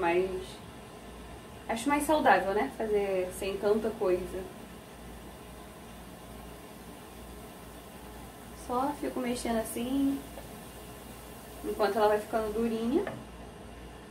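A woman talks calmly close by, in short bursts with pauses.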